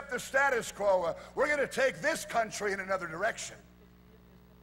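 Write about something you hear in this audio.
A middle-aged man speaks loudly and with animation through a microphone.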